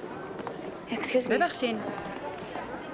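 A young woman says a few words up close.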